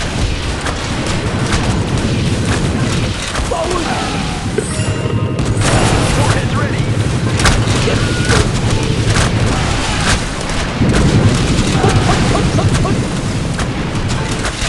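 Explosions and blasts go off in quick bursts.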